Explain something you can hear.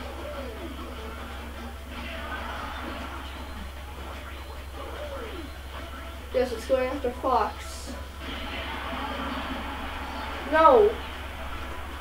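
Video game music plays steadily from a television speaker.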